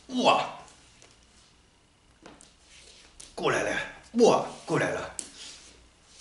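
A man speaks calmly in bursts, with a slight echo in a bare room.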